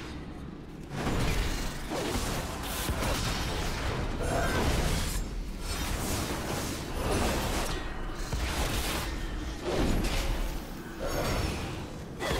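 Spells burst and blows clash loudly in a game fight.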